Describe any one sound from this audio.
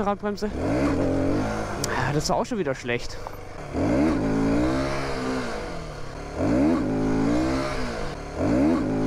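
A motorcycle engine revs hard, climbing in pitch and dropping with each gear change.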